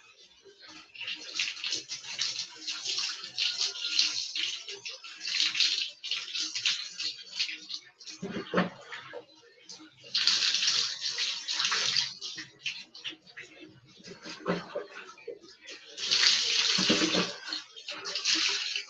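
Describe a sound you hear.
Water splashes onto a person and the floor from a poured scoop.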